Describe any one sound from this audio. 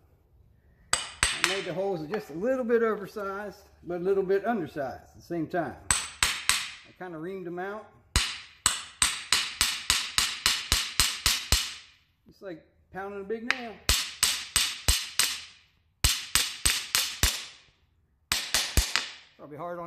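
A hammer strikes a metal peg into wood with sharp ringing blows.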